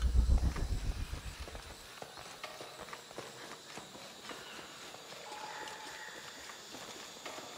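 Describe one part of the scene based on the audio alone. Footsteps crunch on a rocky forest path.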